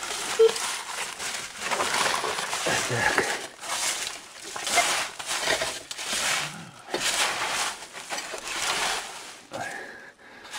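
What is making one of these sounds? Dry debris rustles and crunches as a metal detector sweeps over it.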